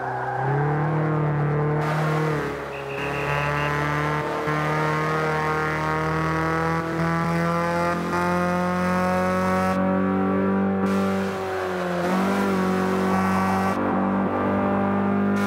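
A racing car engine roars loudly, rising in pitch and dropping briefly at each gear change.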